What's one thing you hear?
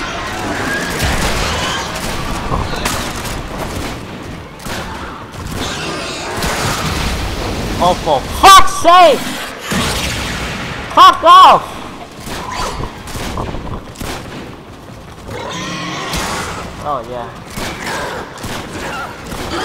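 Gunfire and sword strikes clash rapidly.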